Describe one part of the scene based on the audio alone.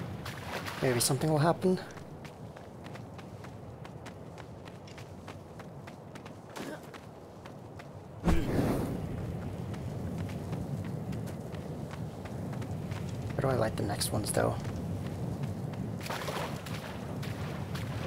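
Footsteps patter quickly on stone steps.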